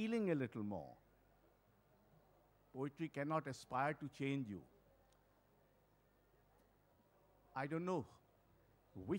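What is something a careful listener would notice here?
An elderly man speaks slowly and with expression through a microphone and loudspeakers, with pauses between phrases.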